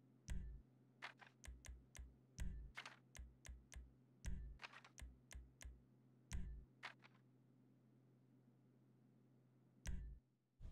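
Short game menu clicks and low thuds sound again and again.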